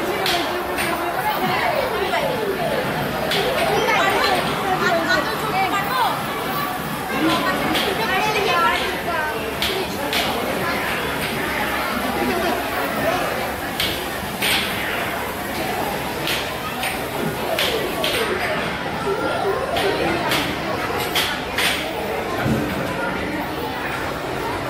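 An arcade racing game plays lively electronic music.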